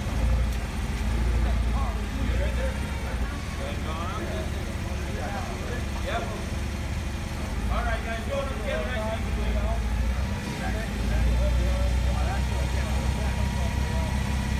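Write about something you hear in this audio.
A forklift engine rumbles steadily nearby, outdoors.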